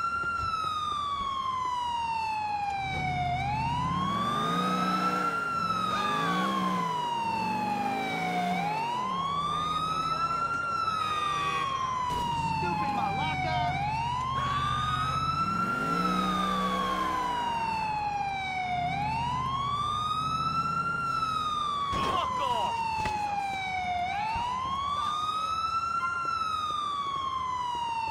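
A police siren wails up and down steadily.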